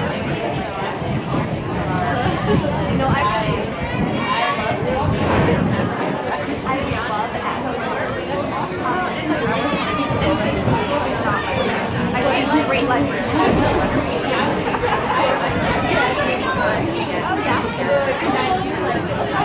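Several men and women chatter close by, outdoors.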